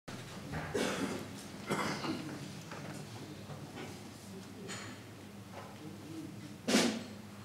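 A man speaks calmly through a microphone and loudspeakers in an echoing hall.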